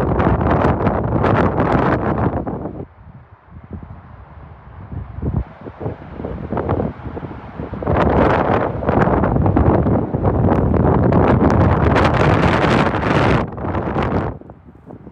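Wind buffets loudly in the open air.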